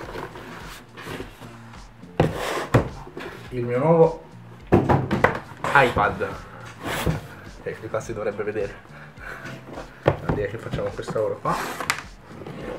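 Cardboard packaging scrapes and rustles as a box is handled.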